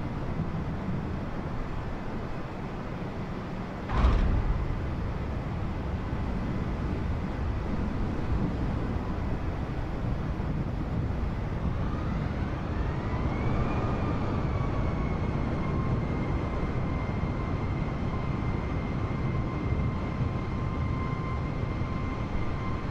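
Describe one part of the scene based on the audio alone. A jet airliner's engines roar steadily.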